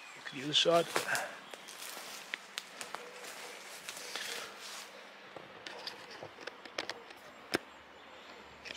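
Leaves rustle as a man moves about.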